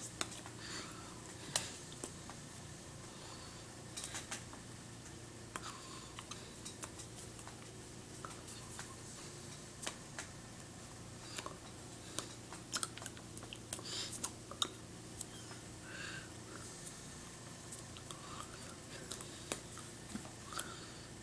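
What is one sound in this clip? A middle-aged woman murmurs softly close by.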